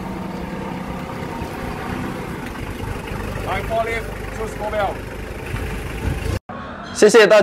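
A forklift engine hums steadily.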